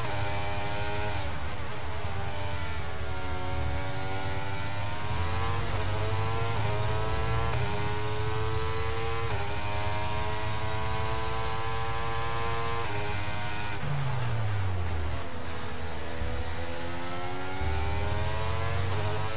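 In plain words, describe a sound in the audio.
A racing car engine screams at high revs, dropping in pitch as the driver brakes and shifts down.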